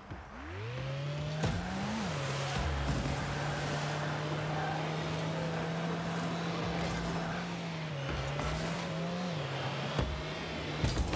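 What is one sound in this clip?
A car engine revs up and hums steadily, rising and falling in pitch.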